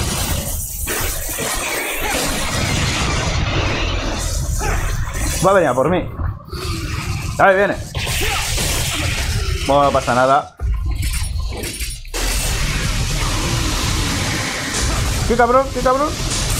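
Swords slash and clash rapidly in a fight.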